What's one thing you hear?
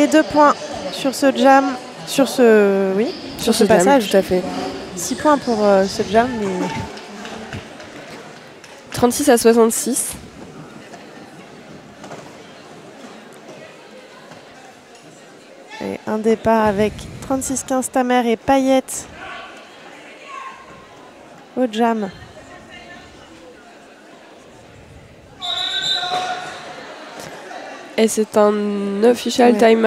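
Roller skate wheels roll and scrape on a hard floor.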